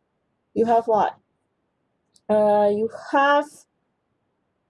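A woman speaks calmly into a microphone, heard as over an online call.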